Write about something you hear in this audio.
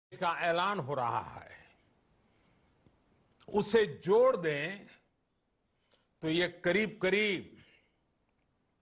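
An elderly man speaks calmly and steadily through a microphone, with short pauses.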